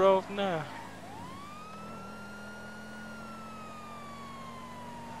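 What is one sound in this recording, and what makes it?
A siren wails, rising and then slowly falling.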